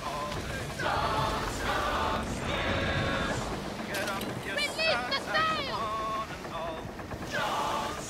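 A wooden sailing ship's hull cuts through waves with splashing spray.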